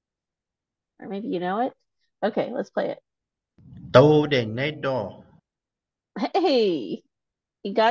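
A woman speaks calmly through a microphone in short phrases.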